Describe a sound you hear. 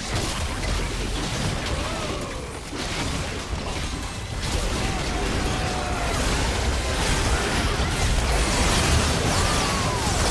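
Game spell effects whoosh, zap and explode in quick bursts.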